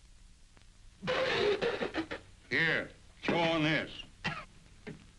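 An elderly man speaks with animation nearby.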